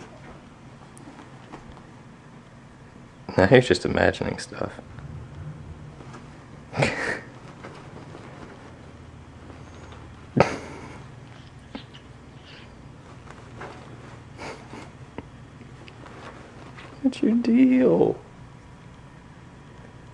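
Bed sheets rustle as a kitten pounces and rolls in them.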